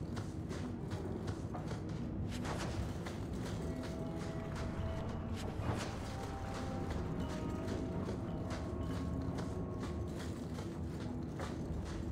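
Footsteps thud across wooden boards.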